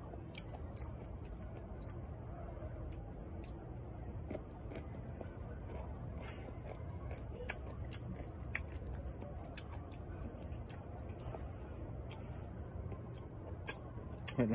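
A young man chews crunchy fruit with his mouth close by.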